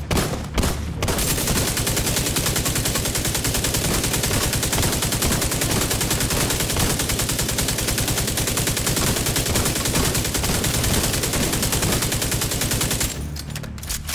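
An automatic rifle fires in long, rapid bursts.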